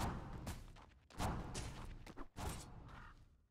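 Fantasy battle sound effects clash and whoosh.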